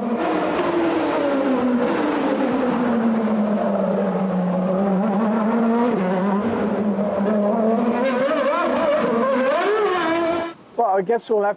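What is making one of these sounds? A racing car engine roars and whines as it speeds past.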